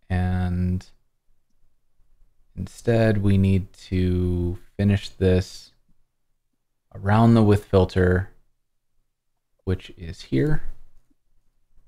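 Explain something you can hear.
A man talks calmly over an online call, in short bursts with pauses.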